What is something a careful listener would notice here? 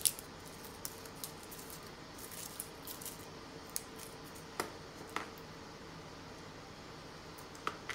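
Garlic skins crackle sharply as they are pulled away.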